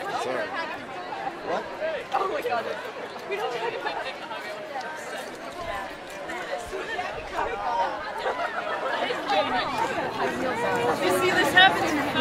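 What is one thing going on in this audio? Young women chatter and laugh excitedly nearby outdoors.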